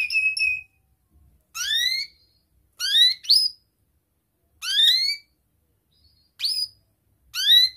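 A small bird chirps close by in short, rising calls with pauses between them.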